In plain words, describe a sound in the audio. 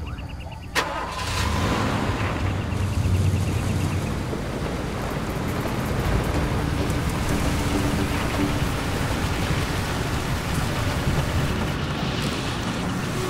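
An engine rumbles steadily as a vehicle drives over rough ground.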